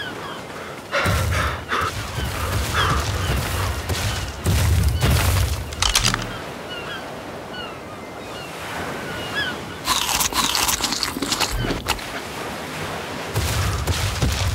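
Small waves lap gently at a sandy shore.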